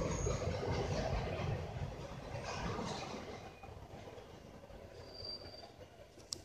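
A freight train rumbles and clatters past on the tracks, fading as it goes.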